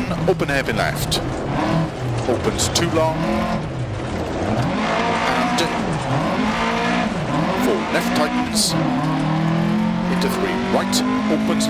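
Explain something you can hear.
Tyres crunch and skid on gravel.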